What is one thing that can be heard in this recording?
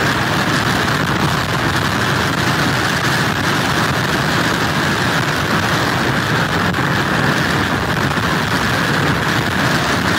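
Heavy surf crashes and roars against pier pilings.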